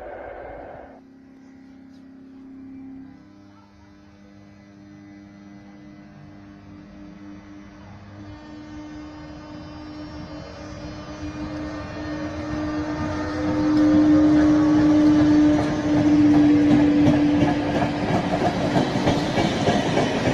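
An electric locomotive whines as it approaches and passes.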